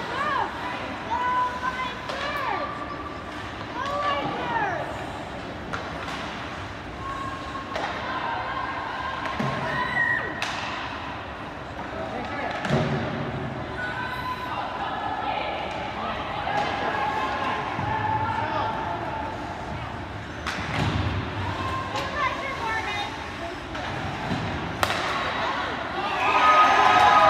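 Spectators murmur and call out in the stands.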